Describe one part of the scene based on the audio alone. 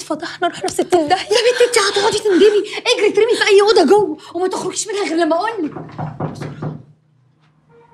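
A young woman shouts angrily close by.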